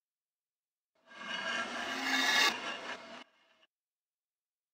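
A heavy metal dial grinds and clicks as it turns.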